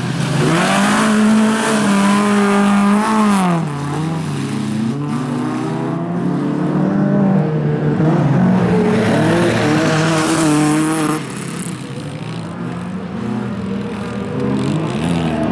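Racing car engines roar loudly and rev up and down.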